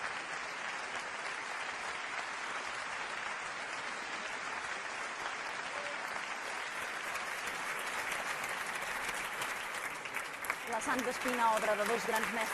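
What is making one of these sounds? An audience applauds steadily in a large echoing hall.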